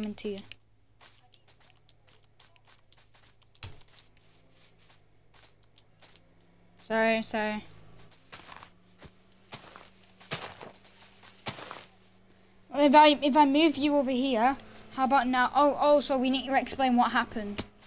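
Footsteps patter softly on grass.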